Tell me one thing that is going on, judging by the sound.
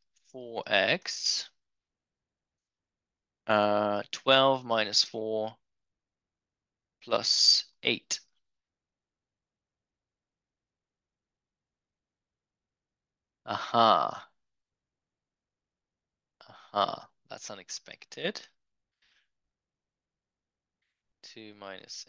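A man speaks calmly into a microphone, in short phrases with long pauses.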